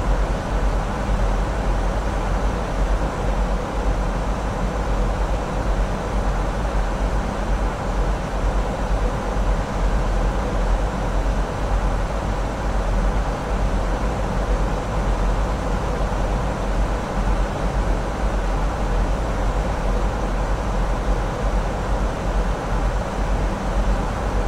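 Jet engines roar steadily from outside a cockpit.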